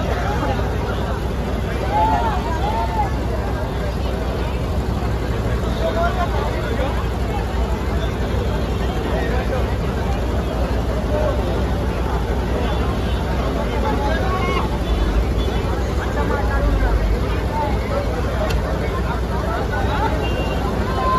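Loud music with heavy bass booms from loudspeakers.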